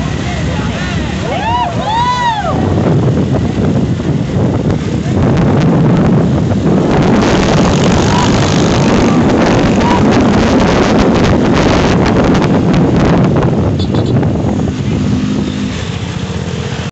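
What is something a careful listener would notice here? Motorbike engines roar close by as they ride along.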